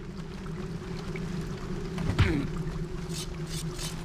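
A sword swings and strikes with a sharp hit.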